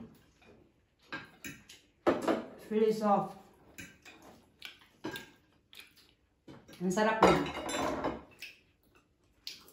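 Cutlery clinks and scrapes against plates.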